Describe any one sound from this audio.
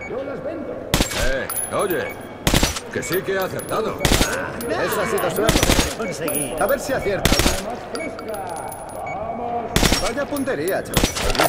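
A rifle fires single loud shots in an echoing space.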